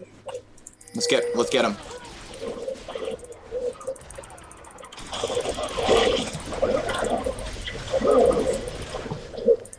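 Game characters clash with sharp hits.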